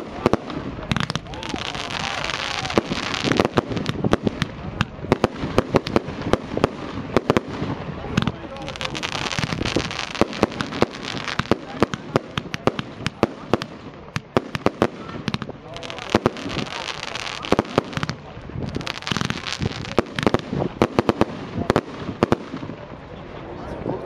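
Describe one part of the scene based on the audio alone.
Fireworks crackle and sizzle as they burst.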